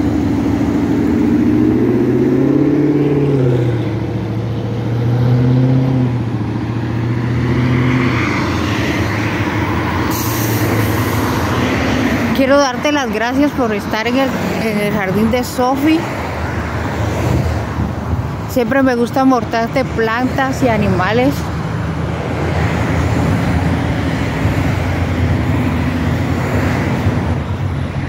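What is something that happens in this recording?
Cars drive past on a nearby road, their engines and tyres humming steadily.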